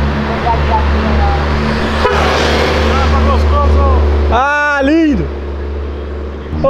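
A car engine rumbles loudly as a car drives past.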